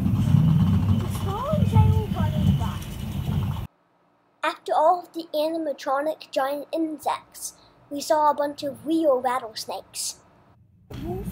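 A young child talks close by.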